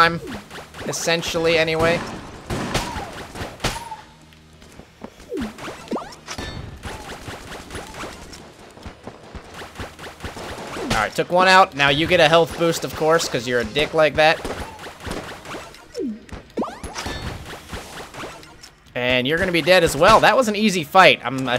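Small guns fire rapidly in a video game.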